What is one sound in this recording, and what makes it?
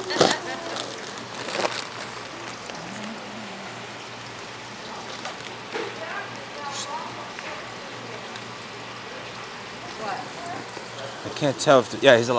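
Plastic rustles as a man digs through a bag.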